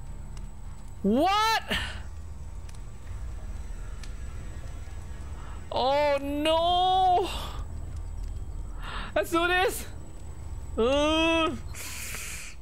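A young woman speaks animatedly into a close microphone in short bursts.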